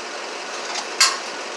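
A sharp click sounds from a fixture being worked on overhead.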